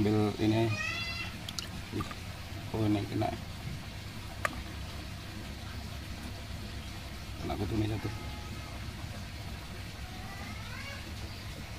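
Water splashes softly as hands handle a small fish.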